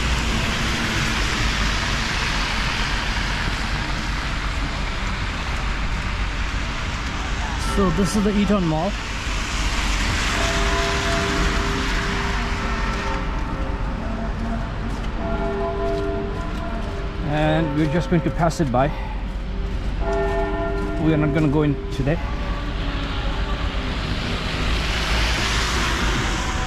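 Car tyres hiss on a slushy street.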